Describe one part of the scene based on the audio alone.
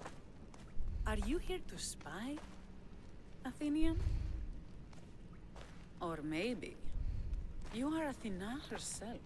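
A young woman speaks with a mocking, challenging tone, close by.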